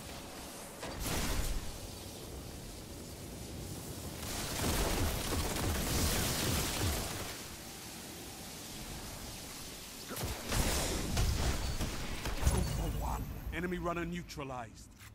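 Energy weapons fire in loud bursts of shots.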